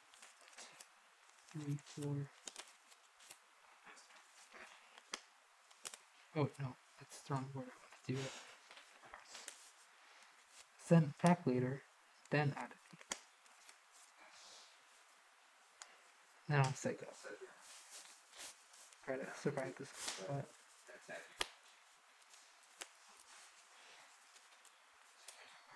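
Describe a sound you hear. Playing cards tap and slide softly on a table mat.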